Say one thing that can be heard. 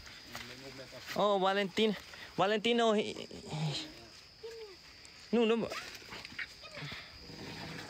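An elephant tears and chews grass close by.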